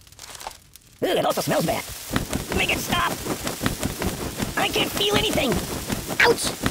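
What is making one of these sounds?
Pigeons flap and peck rapidly at a soft target.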